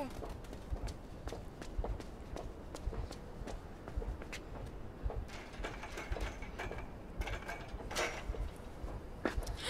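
Small footsteps run.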